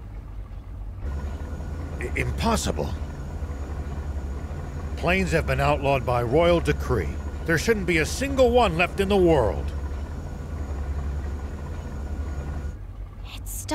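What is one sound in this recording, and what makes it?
An airship's engines hum low and steady.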